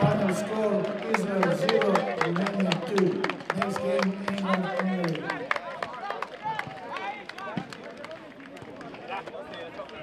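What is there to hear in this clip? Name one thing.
A crowd claps rapidly.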